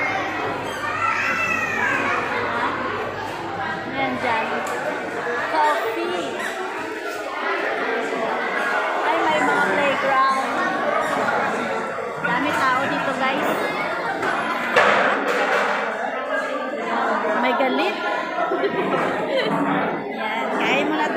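A crowd chatters throughout in a large echoing hall.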